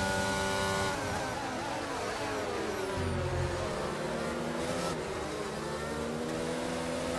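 A racing car engine drops in pitch, downshifting hard under braking, then climbs again.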